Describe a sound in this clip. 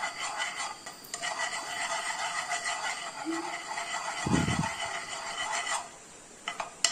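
Hot oil sizzles softly in a pan.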